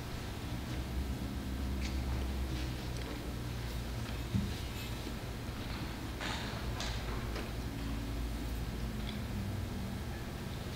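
A man quietly murmurs a prayer nearby.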